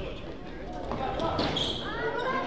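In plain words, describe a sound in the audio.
Young players shout to one another across the court.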